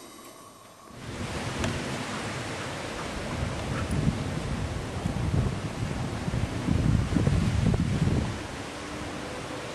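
Two dogs growl playfully as they wrestle.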